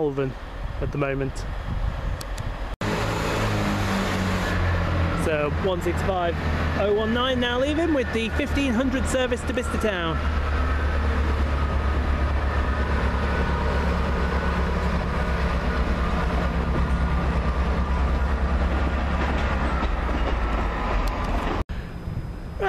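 A diesel train rumbles steadily as it pulls away.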